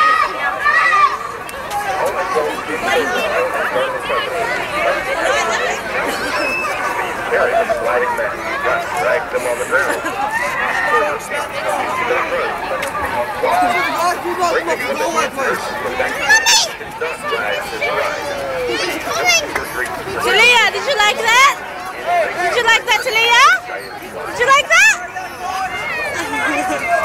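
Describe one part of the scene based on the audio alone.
A crowd chatters all around outdoors.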